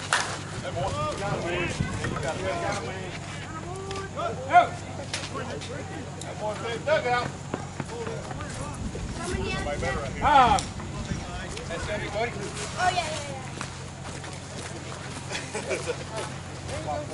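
Men call out and talk across an outdoor field.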